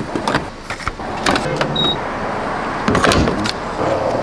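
A fuel nozzle clunks as it is lifted from a pump.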